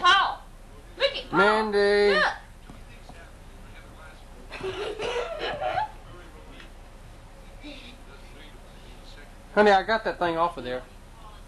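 A young child squeals and babbles.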